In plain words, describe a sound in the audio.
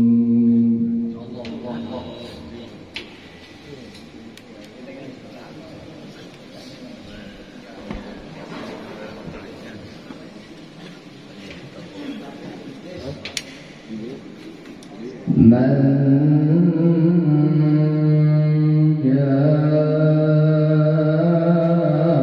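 An older man chants in a long, drawn-out melody through a microphone.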